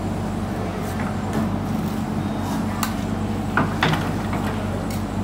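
An excavator engine idles with a steady low rumble.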